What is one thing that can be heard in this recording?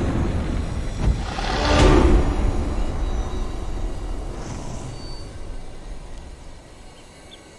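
A shimmering magical whoosh swells and fades.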